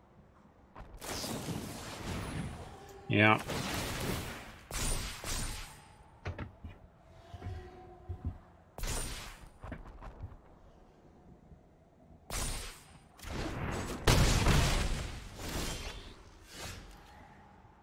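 Game effects whoosh and chime.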